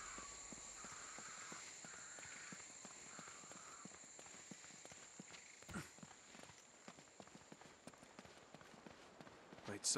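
Footsteps run over stony ground.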